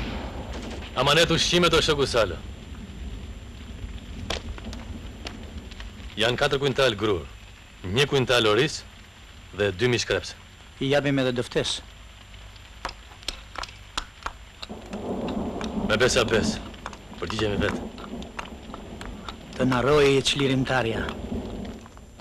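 A man speaks in short, separate bursts.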